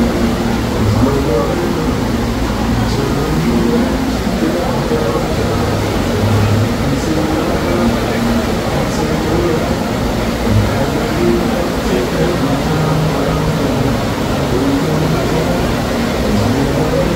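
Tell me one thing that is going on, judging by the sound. Water rushes and churns loudly and steadily.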